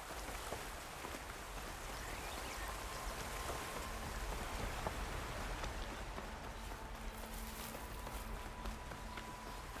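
Footsteps crunch on grass and dirt.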